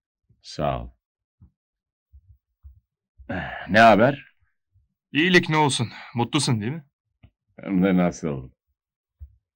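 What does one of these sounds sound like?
A man speaks loudly and sternly nearby.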